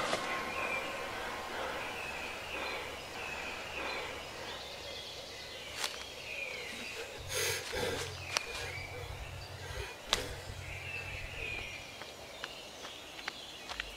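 A young man breathes heavily.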